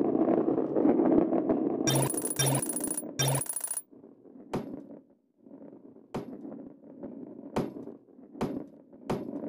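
A heavy ball rolls and rumbles along a metal track.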